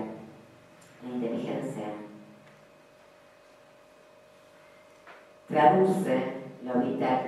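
A woman speaks with pauses into a microphone, heard through loudspeakers in a room.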